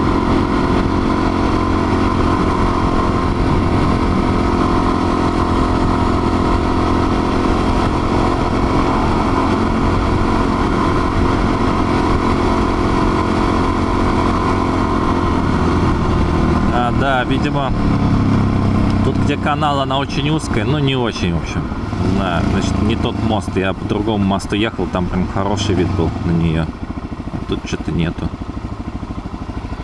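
A single-cylinder dual-sport motorcycle cruises at speed, then slows in traffic.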